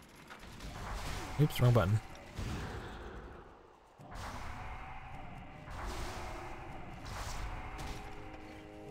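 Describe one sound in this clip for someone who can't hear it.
Magic spells whoosh and crackle in bursts during a fight.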